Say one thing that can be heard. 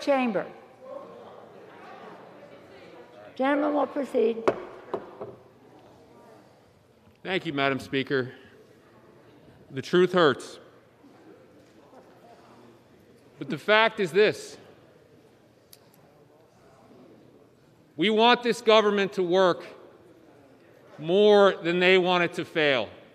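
A man speaks deliberately into a microphone, in short phrases with pauses, in a large echoing hall.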